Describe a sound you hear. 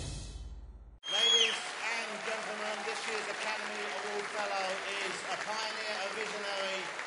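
A man speaks with animation into a microphone in a large hall.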